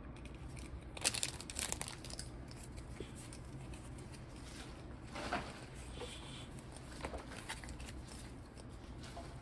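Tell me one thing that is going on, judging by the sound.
Trading cards rustle and slap softly as they are shuffled.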